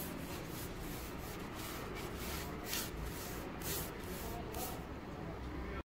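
A paintbrush swishes in quick strokes across wood.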